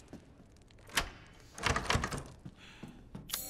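A heavy wooden door creaks open.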